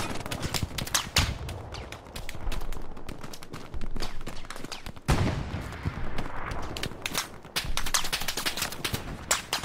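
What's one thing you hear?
Gunfire crackles in rapid bursts from near and far.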